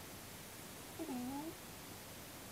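A small animal lets out a brief whimper.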